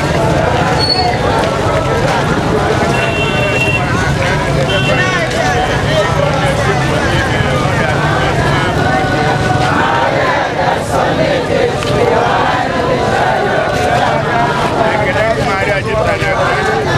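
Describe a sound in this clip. A large crowd of men and women sings and chants together outdoors.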